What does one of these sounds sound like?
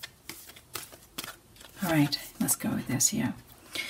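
A card slides and taps onto a table.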